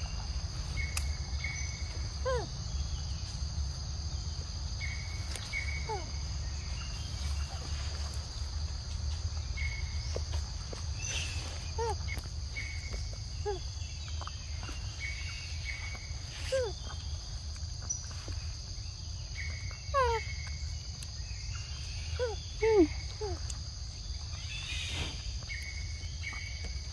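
Monkeys chew and slurp soft fruit close by.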